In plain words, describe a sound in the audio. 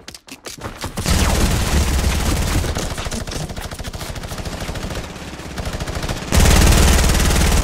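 Rapid gunshots crack loudly, one after another.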